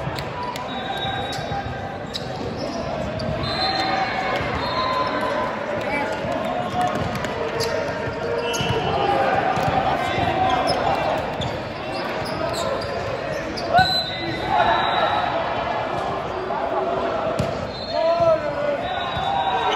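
Teenage boys call out to each other in a large echoing hall.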